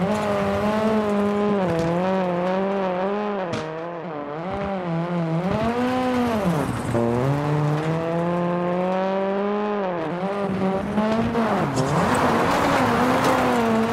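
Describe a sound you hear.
Gravel sprays and crunches under a car's tyres.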